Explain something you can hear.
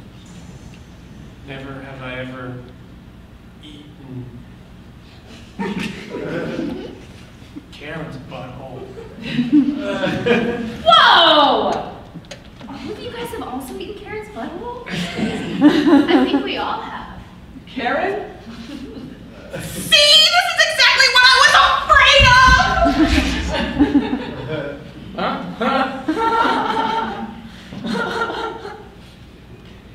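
Several men and women talk with animation on a stage, heard from the audience in a large room.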